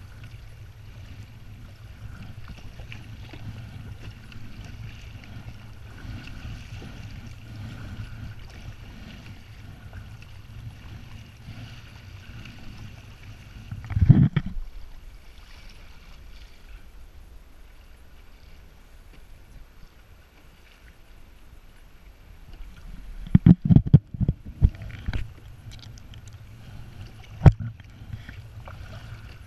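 A paddle splashes through water in steady strokes.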